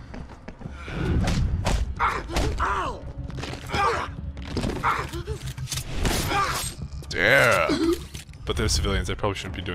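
Heavy blows thud in a scuffle.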